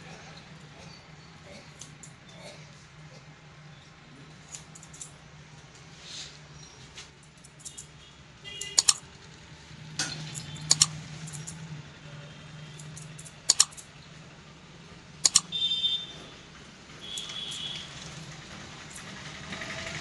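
Scissors snip hair close by.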